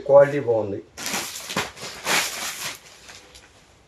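Clothes and plastic wrapping rustle as they are handled.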